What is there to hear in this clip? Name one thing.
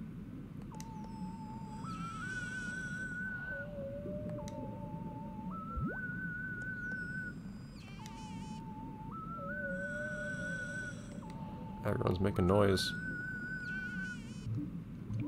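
A whale calls with long, wavering, rising tones.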